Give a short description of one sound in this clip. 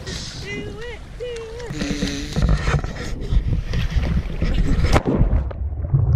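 Water splashes around a swimmer.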